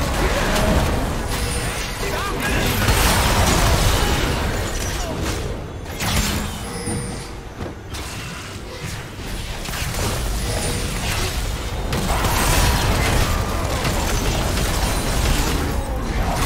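Game sword strikes and impacts clash rapidly.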